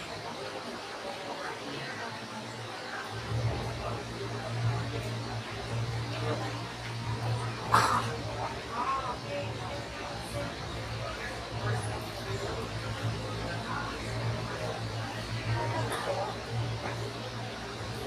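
A crowd of people murmurs quietly in the background.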